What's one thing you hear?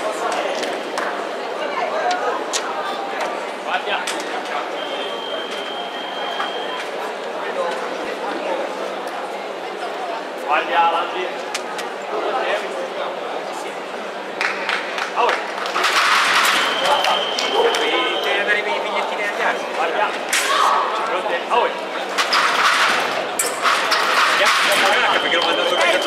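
Fencers' feet stamp and shuffle on the floor.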